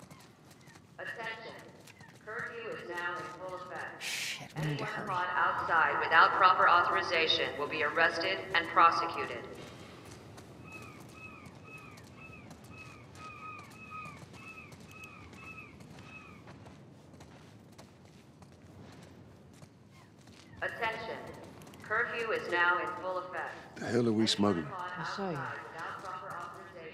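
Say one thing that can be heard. A man's voice announces through a loudspeaker with a hollow echo.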